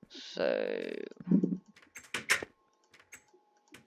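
A wooden door clicks open.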